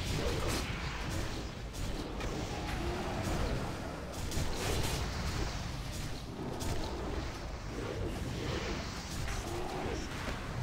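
Weapons strike and clash repeatedly in combat.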